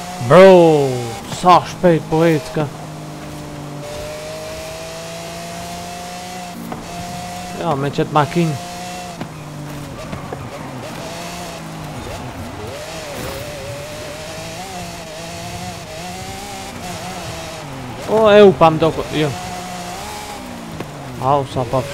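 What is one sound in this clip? A racing car engine roars steadily, shifting pitch as it speeds up and slows.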